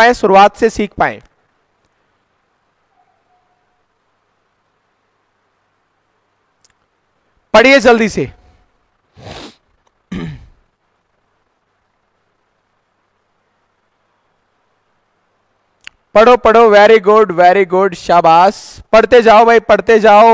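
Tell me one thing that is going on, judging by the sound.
A man speaks with animation into a close microphone, pausing often.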